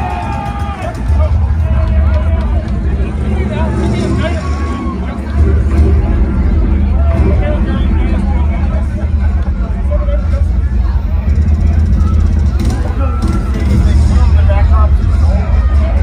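Loud music with a heavy, thumping bass plays through large loudspeakers.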